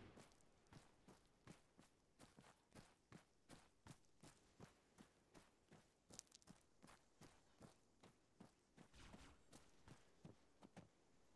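Footsteps crunch on sand and gravel at a steady walking pace.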